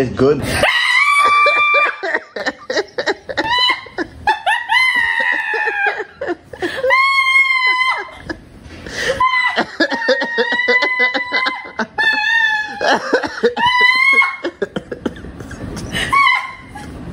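A young woman screams loudly with excitement close by.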